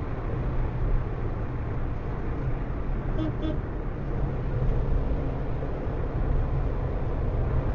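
A car drives fast along a highway with a steady low rumble.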